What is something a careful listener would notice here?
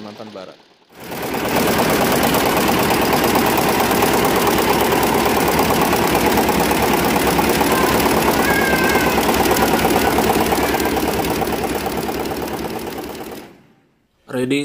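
An embroidery machine stitches with a rapid, steady chatter.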